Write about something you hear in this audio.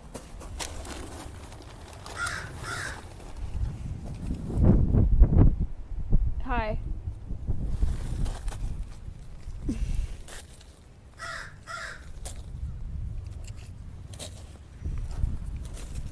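Hands scrape and rustle in loose gravel.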